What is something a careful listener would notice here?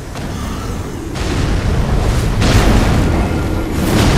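Rocks and debris clatter and thud down.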